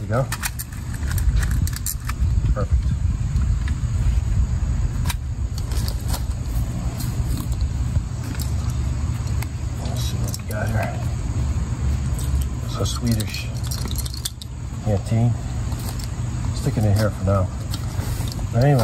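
Metal objects clink and knock as a man handles them.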